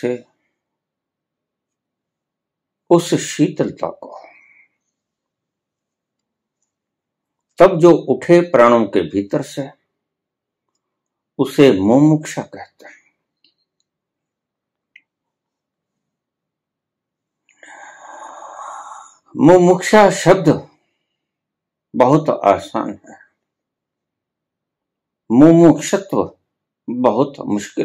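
An elderly man speaks calmly in short phrases, close by, with quiet pauses between.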